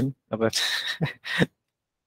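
A young man laughs briefly.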